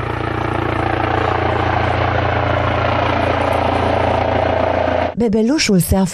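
A helicopter's rotor thuds and its engine whines steadily close by.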